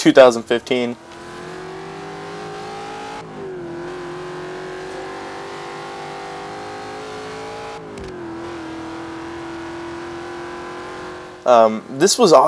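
A car engine hums steadily and climbs through the gears as the car speeds up.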